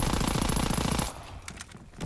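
A gun's magazine is reloaded with a metallic click.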